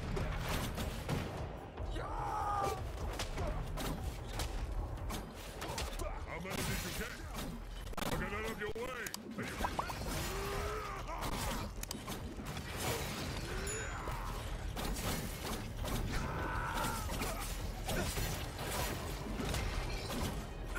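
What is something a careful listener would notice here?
Swords clash and slash in quick, repeated strikes.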